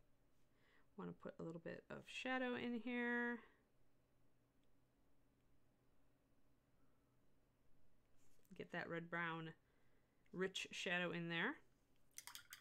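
A middle-aged woman talks calmly into a microphone, heard in short bursts.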